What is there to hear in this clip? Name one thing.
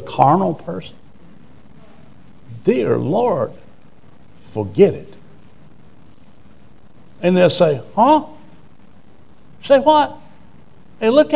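An older man speaks slowly in short phrases with long pauses.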